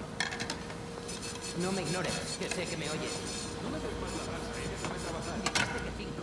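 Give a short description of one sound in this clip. Pots and pans clatter and clink.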